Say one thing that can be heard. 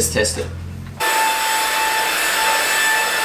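A vacuum cleaner hums steadily.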